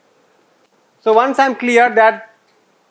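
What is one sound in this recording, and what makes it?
A man speaks briefly and clearly through a clip-on microphone.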